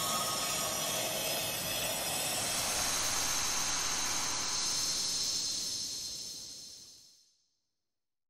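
A bright, shimmering magical chime rings out and slowly fades away.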